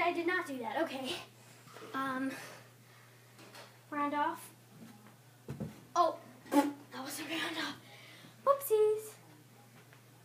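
A young girl talks with animation nearby.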